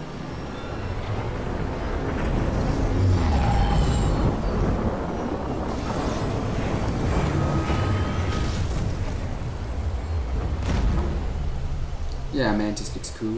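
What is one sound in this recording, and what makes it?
A spaceship's engines roar loudly as it comes down to land.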